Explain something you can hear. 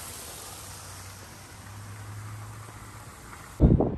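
A golf ball rolls across artificial turf.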